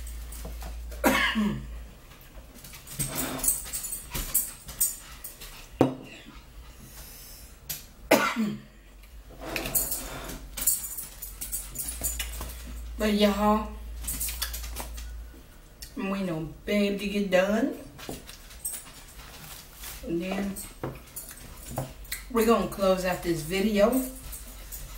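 A woman speaks close by in a relaxed, chatty way.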